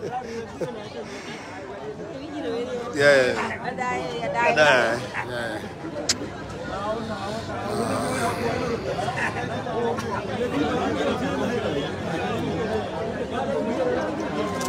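A crowd of men and women chatter and talk loudly all around.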